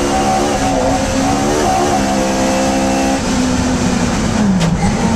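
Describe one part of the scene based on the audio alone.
A small four-cylinder race car engine roars at full throttle, heard from inside the cockpit.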